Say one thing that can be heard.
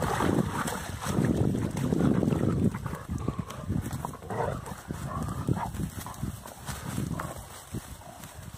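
Dogs pant and growl playfully while tugging at a stick.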